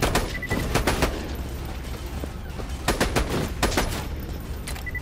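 Gunshots and explosions boom in quick bursts.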